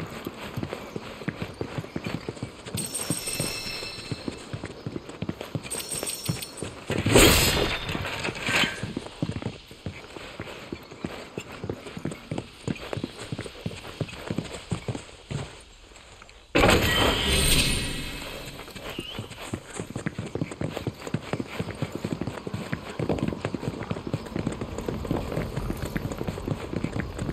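Footsteps crunch steadily over stone and gravel.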